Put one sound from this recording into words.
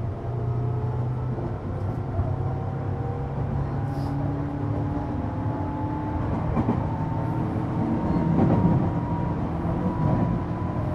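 A train rumbles along the tracks with a steady low roar.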